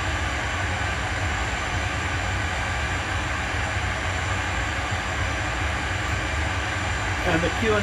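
A steady low engine rumble drones on.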